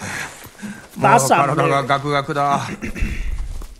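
A man speaks into a close microphone with animation.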